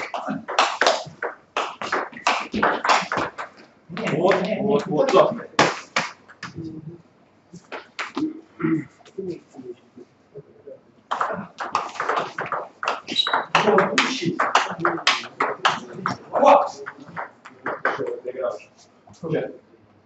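A table tennis ball clicks quickly back and forth between paddles and table.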